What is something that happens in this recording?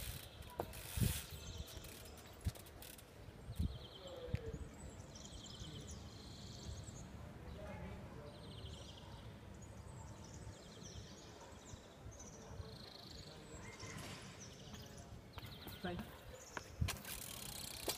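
A bicycle knocks and clatters on the ground.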